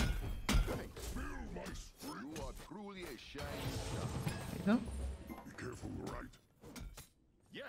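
Magic blasts whoosh and crackle in quick bursts.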